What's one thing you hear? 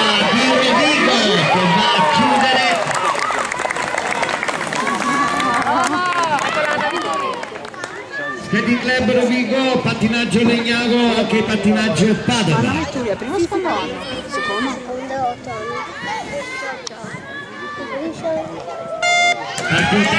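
A crowd of children and adults cheers and shouts loudly outdoors.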